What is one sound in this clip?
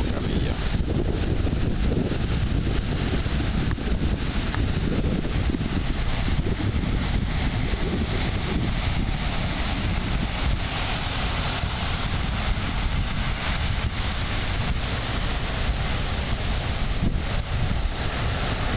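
Ocean waves roll in and break steadily.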